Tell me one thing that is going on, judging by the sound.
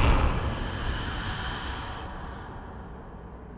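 A puff of dust bursts out with a soft whoosh.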